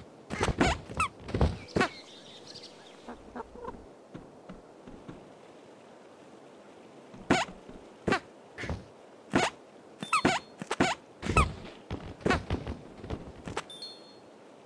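A sword clangs sharply several times.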